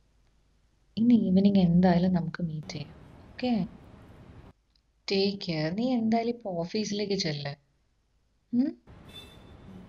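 A young woman speaks close by into a phone.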